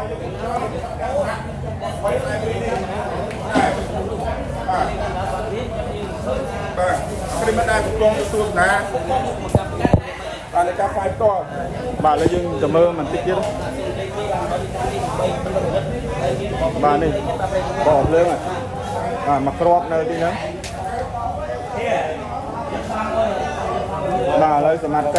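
Several men talk over one another nearby.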